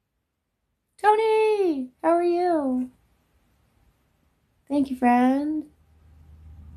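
A young woman sings a few long notes.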